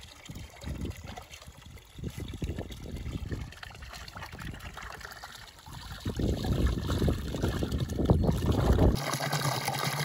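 Water trickles from a spout and splashes into a trough.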